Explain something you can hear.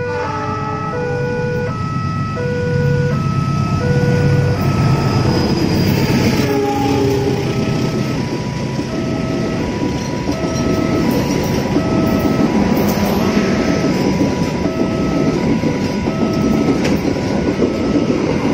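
A diesel train rumbles past close by.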